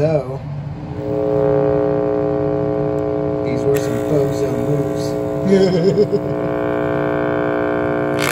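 A loudspeaker plays a steady, buzzing tone.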